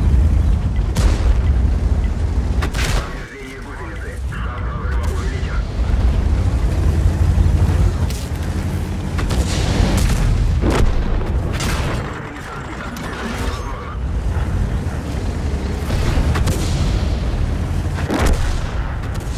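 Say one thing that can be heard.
Tank cannon shots boom, one after another.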